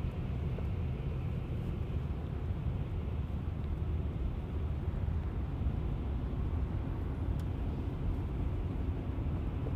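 A truck rolls past close by in the next lane.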